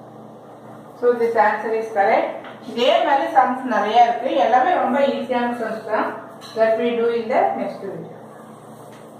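A middle-aged woman speaks clearly and calmly, explaining, close by.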